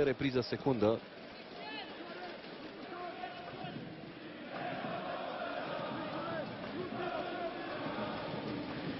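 A large crowd chants and cheers across an open stadium.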